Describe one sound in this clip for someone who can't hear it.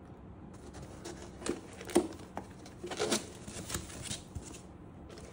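A small cabinet door is handled and clicks open.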